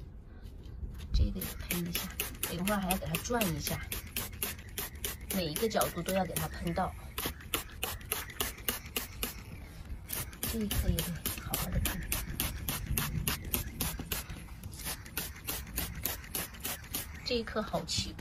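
A spray bottle squirts water in quick, steady bursts.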